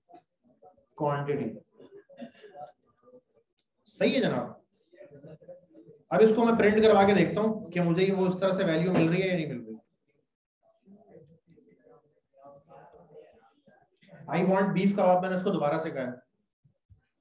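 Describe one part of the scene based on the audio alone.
A man speaks calmly through a close microphone.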